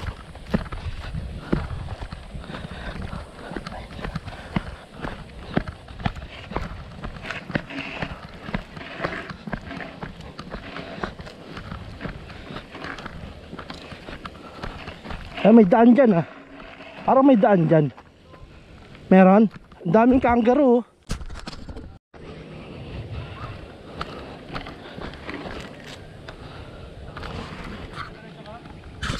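Bicycle tyres crunch and rattle over a dirt trail.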